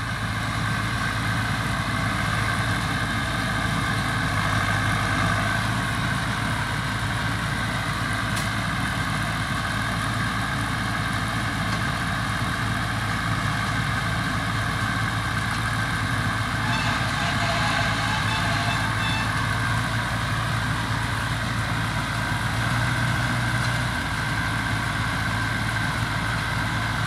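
A hay baler whirs and rattles steadily.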